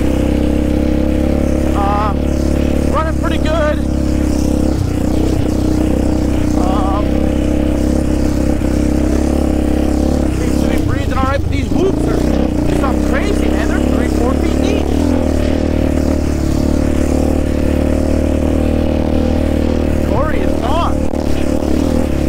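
An all-terrain vehicle's engine drones steadily up close.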